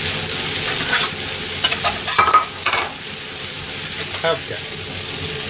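A metal frying pan clanks and scrapes on a stove.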